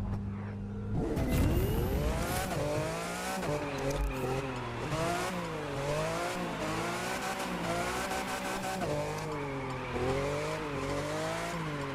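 A racing car engine roars and revs up and down repeatedly.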